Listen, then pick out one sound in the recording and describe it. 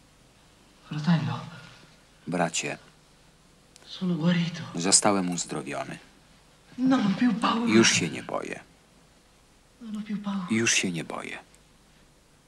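A man answers in a low voice nearby.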